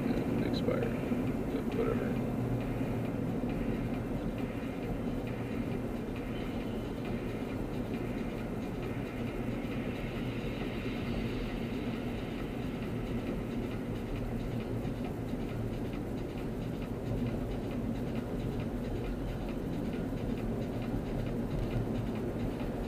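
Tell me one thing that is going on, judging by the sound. Tyres roar on the road at highway speed.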